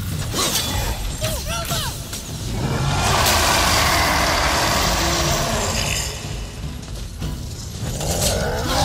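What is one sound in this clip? Heavy blows clang and thud in a fight.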